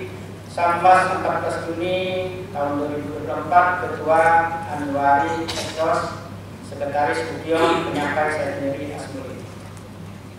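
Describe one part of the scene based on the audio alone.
A middle-aged man reads out calmly through a microphone.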